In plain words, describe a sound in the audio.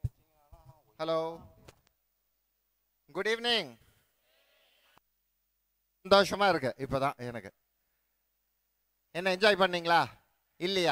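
A man speaks loudly through a loudspeaker in short bursts with pauses between them.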